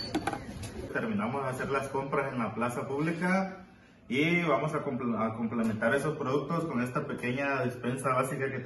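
A man speaks with animation, his voice heard up close as if through a microphone.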